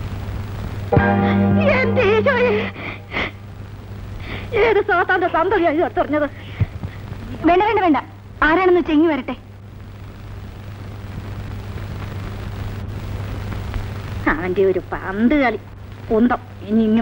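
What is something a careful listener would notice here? A woman talks loudly with animation.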